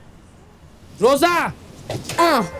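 A man speaks with emphasis close by.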